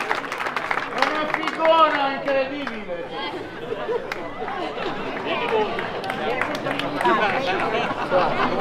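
An elderly man speaks loudly to a crowd outdoors.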